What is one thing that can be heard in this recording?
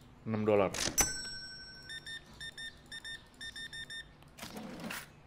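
A cash register beeps in a quick series of electronic tones.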